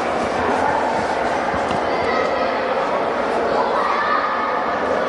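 A crowd murmurs and chatters throughout a large echoing arena.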